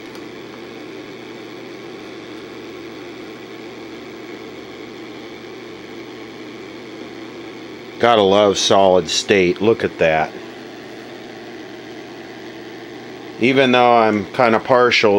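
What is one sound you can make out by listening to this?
A television set hums steadily.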